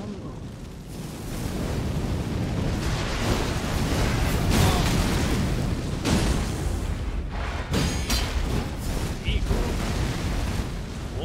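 Fire roars and crackles loudly.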